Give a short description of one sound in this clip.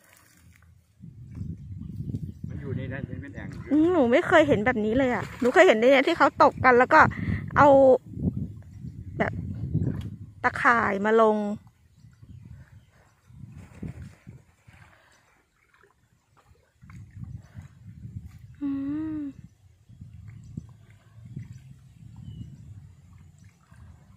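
Water splashes and sloshes as a man wades through shallow muddy water.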